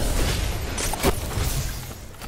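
A loud blast booms.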